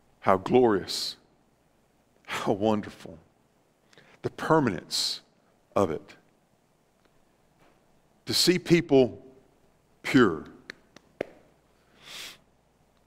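A middle-aged man speaks calmly in phrases with pauses, in a room with a slight echo.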